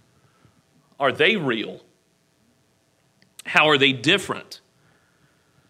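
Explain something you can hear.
A man preaches with animation through a microphone in a large room.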